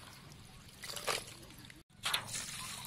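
Hands stir wet insects in a plastic tub, swishing and rustling.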